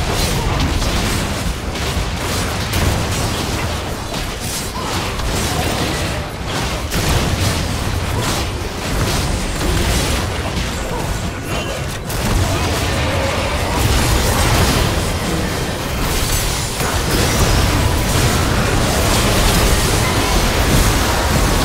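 Game combat effects crackle, clash and burst without pause.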